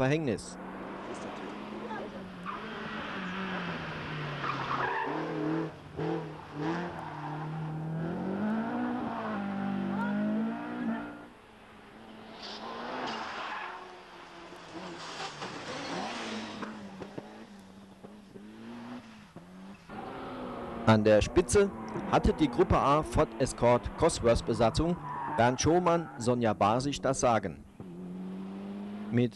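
A rally car engine revs hard as the car speeds past.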